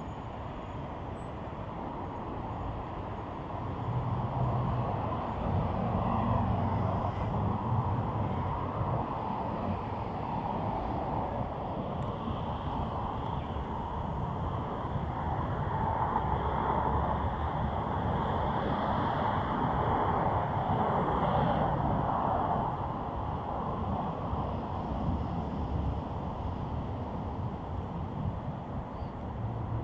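City traffic rumbles steadily along a wide street outdoors.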